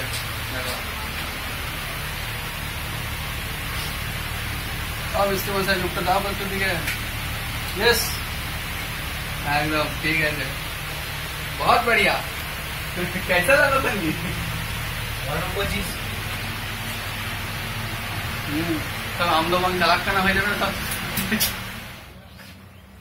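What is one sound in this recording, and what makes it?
A ceiling fan whirs steadily nearby.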